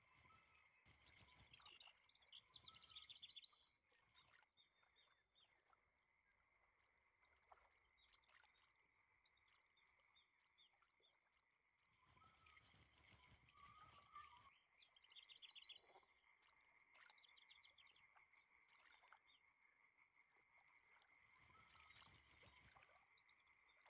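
A fishing reel clicks and whirs as the line is wound in.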